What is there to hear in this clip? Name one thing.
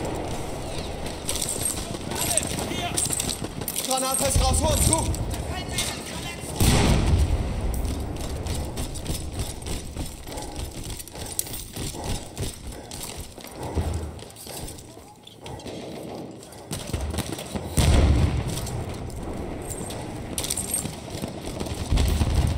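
Gunfire and explosions boom and crack nearby.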